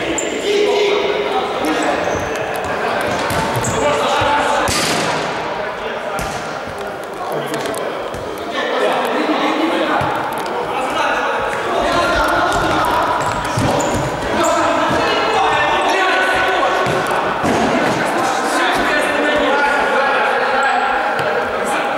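Sneakers squeak sharply on a hard floor.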